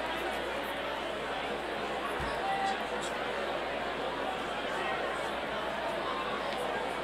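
A live rock band plays in a large hall, with electric guitars, keyboard and drums.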